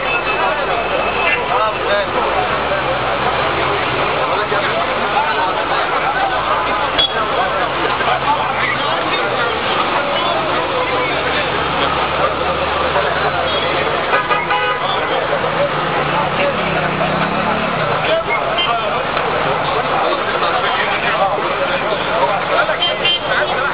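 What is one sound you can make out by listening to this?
A large crowd of men shouts and talks loudly outdoors.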